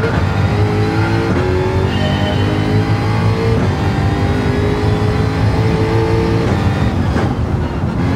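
A racing car engine revs up and climbs through the gears.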